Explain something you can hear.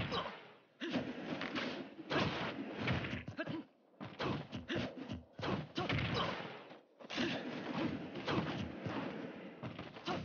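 Sword slashes and blows land with sharp, quick impacts.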